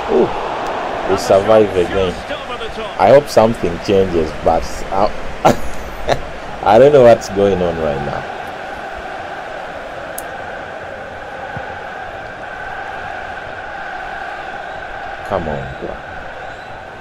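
A young man talks excitedly and laughs close to a microphone.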